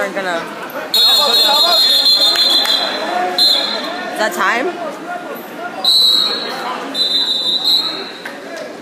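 A referee blows a whistle in sharp bursts.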